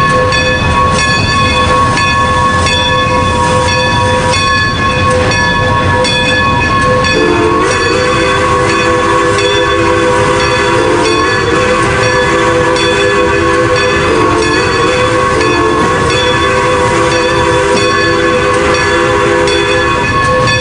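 A steam locomotive chuffs steadily as it rolls along.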